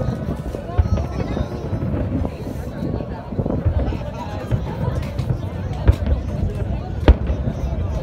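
Aerial firework shells burst with deep booms in the distance.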